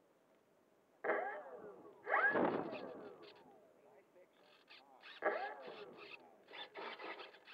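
A small model plane engine cranks and sputters in short bursts, trying to start.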